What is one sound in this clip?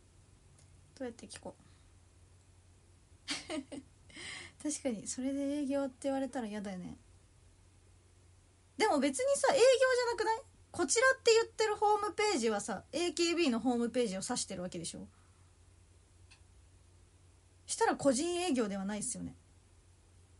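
A young woman talks calmly and close to a microphone, with pauses.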